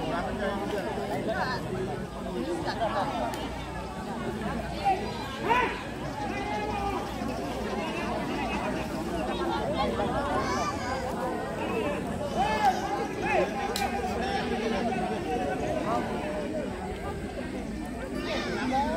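A crowd of men and women chatter outdoors all around.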